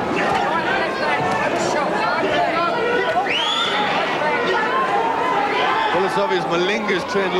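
A large crowd cheers and murmurs in a big echoing hall.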